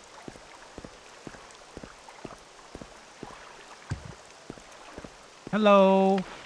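Footsteps tread steadily on soft ground.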